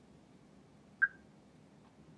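A touchscreen gives a short, high beep.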